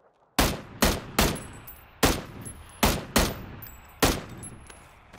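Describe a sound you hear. Rifle shots ring out in quick succession and echo outdoors.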